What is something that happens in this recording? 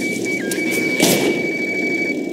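A revolver fires a single loud shot.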